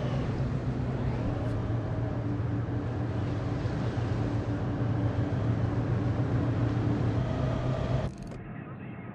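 A ship's engines rumble steadily.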